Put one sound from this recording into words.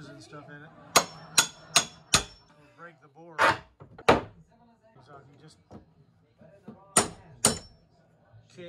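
A hammer knocks sharply against wood.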